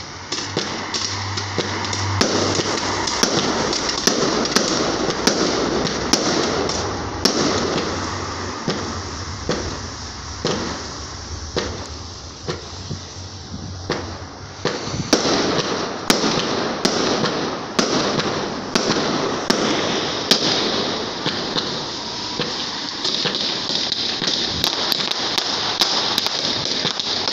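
Fireworks bang loudly, one after another, outdoors.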